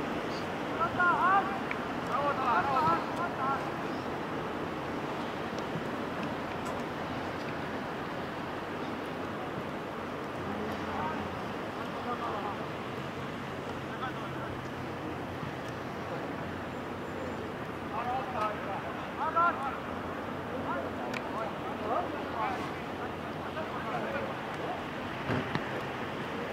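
Football players, young men, shout to each other across an open field in the distance.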